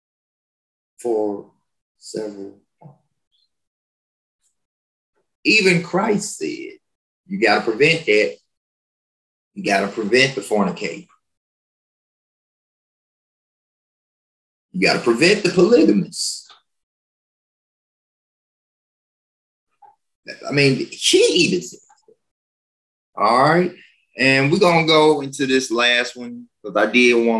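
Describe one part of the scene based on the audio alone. A man speaks calmly in short phrases, heard close through a microphone, with silent pauses between.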